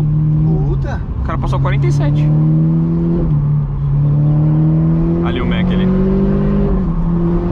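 A car engine revs up and rises in pitch as the car speeds up.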